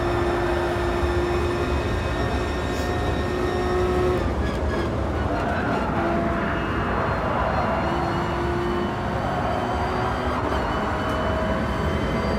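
A racing car engine roars at high revs, dropping in pitch as the car slows for a corner and then rising again.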